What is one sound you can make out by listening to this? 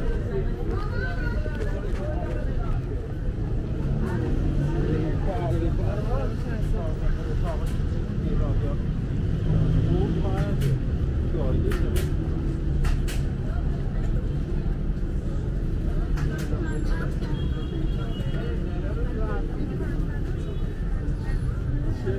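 A busy crowd murmurs and chatters nearby outdoors.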